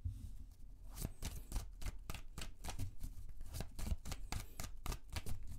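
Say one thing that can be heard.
A deck of cards is shuffled with quick riffling clicks.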